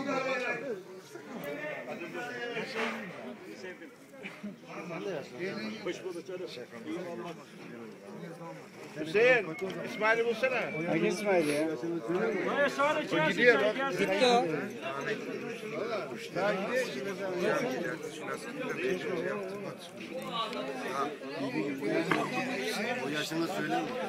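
Several men talk and chatter nearby outdoors.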